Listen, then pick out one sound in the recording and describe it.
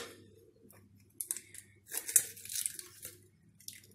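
An egg cracks against the rim of a glass jug.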